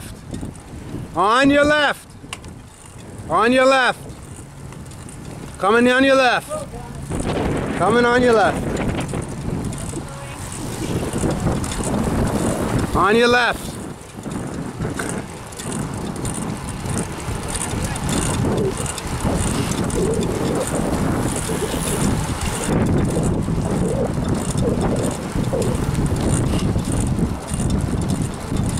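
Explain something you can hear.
Bicycle tyres roll steadily along a paved path.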